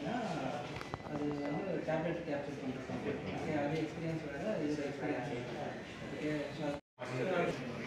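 A man speaks calmly across a desk.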